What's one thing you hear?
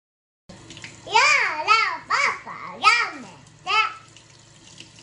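A little girl speaks with animation, close by.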